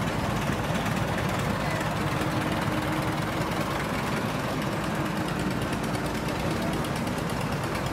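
An old tractor engine chugs steadily close by.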